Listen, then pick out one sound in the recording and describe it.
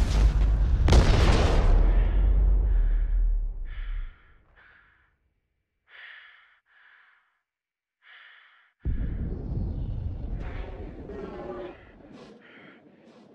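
An explosion roars with a deep rumble.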